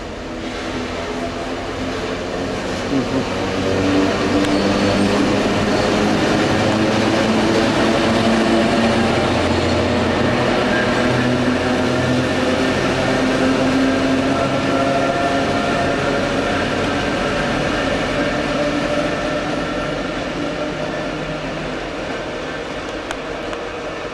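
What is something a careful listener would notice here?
A diesel locomotive engine drones loudly as it pulls in close by and then pulls away.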